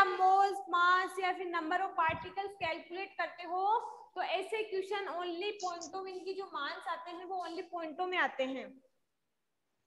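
A young woman speaks with animation into a clip-on microphone.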